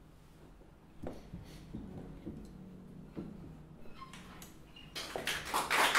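A harp plays a few soft, ringing notes.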